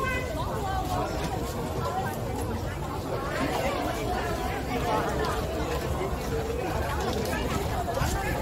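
A busy crowd chatters outdoors.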